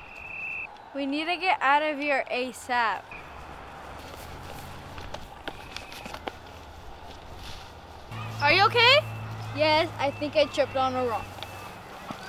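Young girls shout and laugh outdoors.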